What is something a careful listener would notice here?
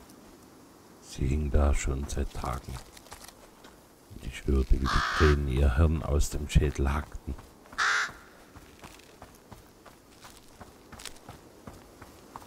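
Footsteps tread softly on grass.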